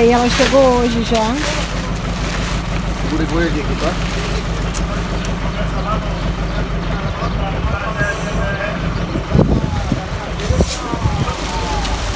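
Plastic wrapping crinkles and rustles as it is pulled off.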